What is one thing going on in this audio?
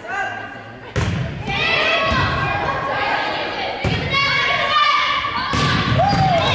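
A volleyball is struck with sharp smacks in a large echoing gym.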